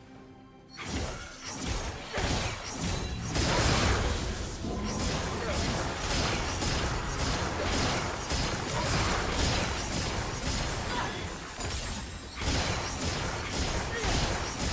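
Spell effects burst and whoosh in a game's fight.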